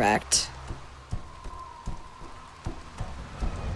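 Footsteps thud slowly on stairs.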